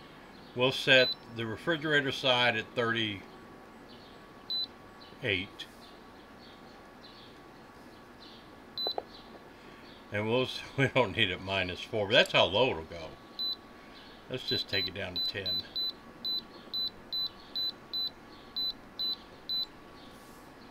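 A control panel beeps sharply each time a button is pressed, in quick repeated bursts.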